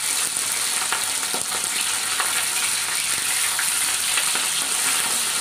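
A metal spatula scrapes and knocks against a steel wok.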